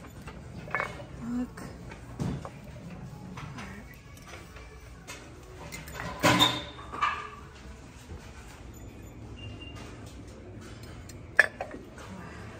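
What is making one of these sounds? Glass and ceramic mugs clink softly as a hand moves them on hooks.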